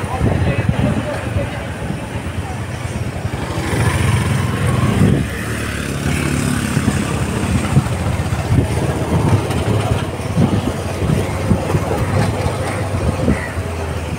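A motorcycle engine hums steadily up close as the bike rides along.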